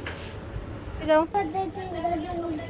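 A small child calls out nearby.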